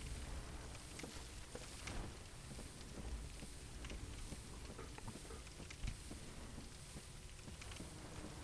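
Hands and feet knock on a wooden ladder while climbing.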